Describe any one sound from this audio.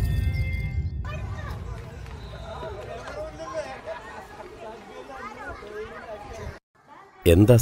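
Children chatter and call out in the distance.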